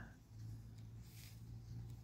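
Leaves rustle softly as a hand handles them.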